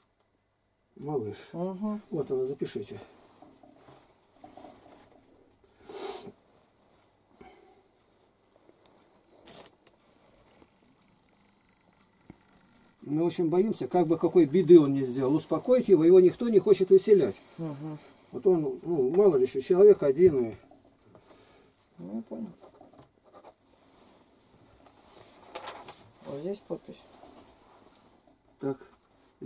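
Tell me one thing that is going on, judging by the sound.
An elderly man talks calmly close by, with pauses.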